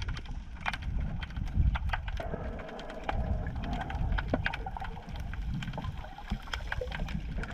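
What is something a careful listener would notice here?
Small clicks and crackles sound underwater.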